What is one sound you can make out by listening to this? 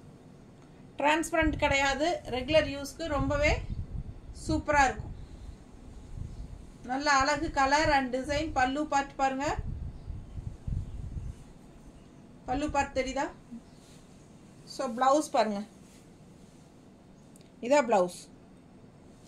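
A middle-aged woman talks calmly and closely to the listener.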